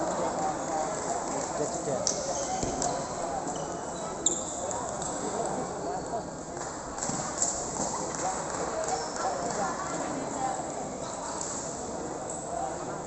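Many voices murmur in a large echoing hall.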